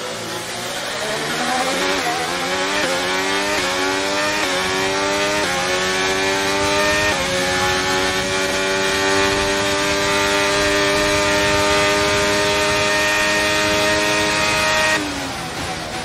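A racing car engine screams at high revs, rising in pitch and dropping with each gear change.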